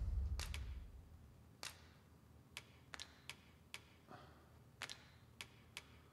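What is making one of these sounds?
Menu selection clicks sound sharply, one after another.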